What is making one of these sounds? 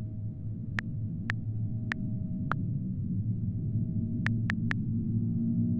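Keyboard keys click softly as someone types.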